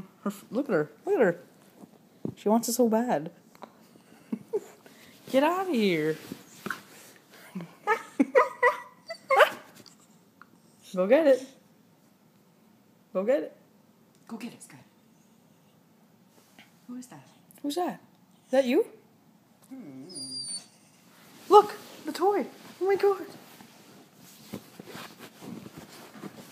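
A teenage boy talks playfully close by, in short bursts.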